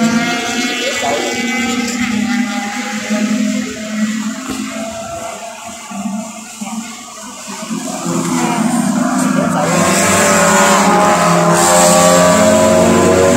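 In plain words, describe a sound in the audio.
A racing car engine roars and whines along a track, growing louder as it nears.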